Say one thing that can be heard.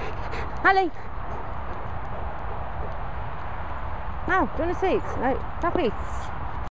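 A dog gives short, high yelping cries in quick bursts.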